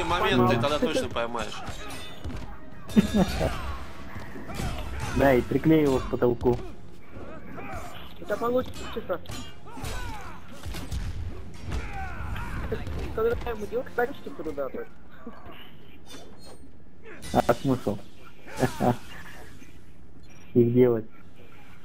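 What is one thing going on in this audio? A game fighter grunts and shouts with effort.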